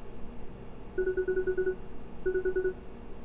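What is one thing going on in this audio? Rapid electronic blips chirp in short bursts.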